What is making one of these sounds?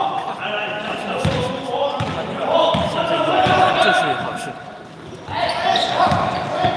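A basketball bounces on a hard floor with echoing thuds.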